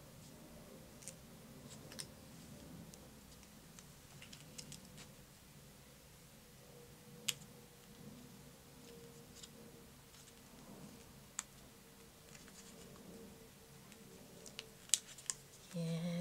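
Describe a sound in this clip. Small objects tap lightly on a hard surface.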